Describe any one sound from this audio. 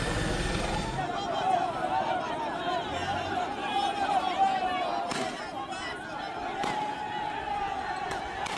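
A large crowd chants and shouts outdoors.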